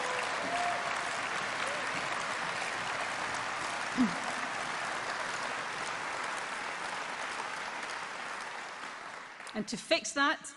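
A large crowd applauds and cheers in a big hall.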